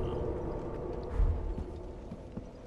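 A heavy weapon strikes with a deep thud.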